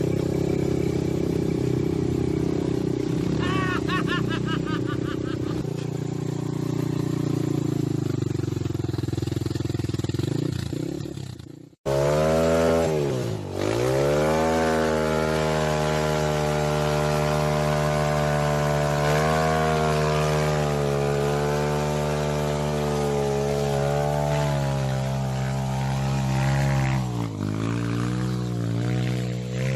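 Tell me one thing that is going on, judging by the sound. A motorcycle engine revs and strains as it climbs.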